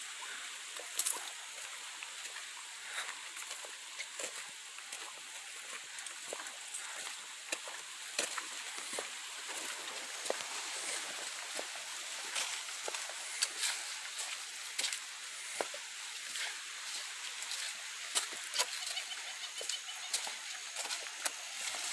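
Footsteps crunch and squelch on a dirt path outdoors.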